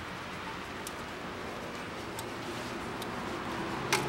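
A rubber belt rattles and slaps as it is pulled off a pulley.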